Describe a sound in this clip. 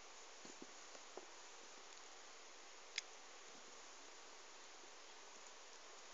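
Small rubber toys knock softly against each other.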